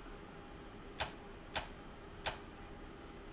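Metal switches click one after another.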